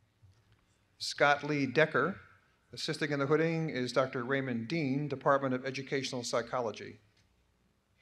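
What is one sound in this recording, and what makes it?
A man reads out clearly through a loudspeaker.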